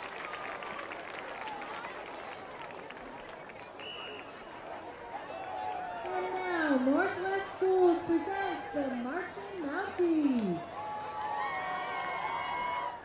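A crowd cheers and claps in the open air.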